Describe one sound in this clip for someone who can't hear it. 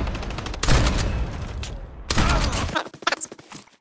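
Loud gunfire bursts rapidly.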